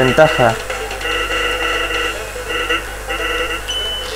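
Short electronic beeps chatter rapidly as game text types out.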